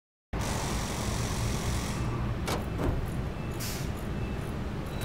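Cardboard scrapes and rustles against a car door.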